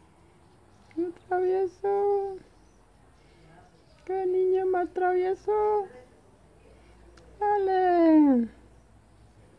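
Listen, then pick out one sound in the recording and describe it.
A cat meows loudly in repeated drawn-out calls.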